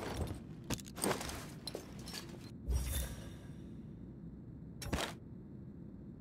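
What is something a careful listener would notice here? Menu items click and rustle as gear is moved in a video game.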